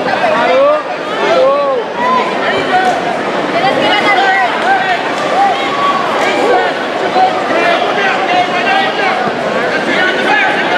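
A crowd of men and women shouts and chatters throughout a large echoing hall.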